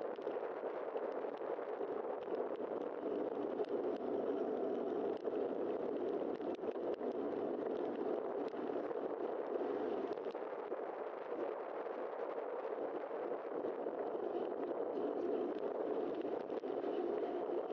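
Wind rushes steadily past a moving bicycle.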